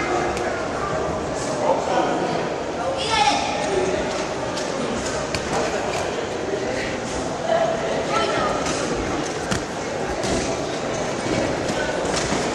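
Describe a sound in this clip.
Boxing gloves thud against bodies and heads.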